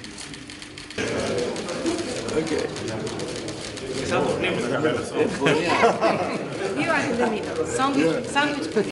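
A group of men chat and laugh together close by.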